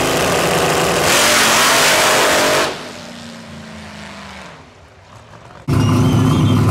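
A turbocharged V8 drag car launches at full throttle and roars away into the distance.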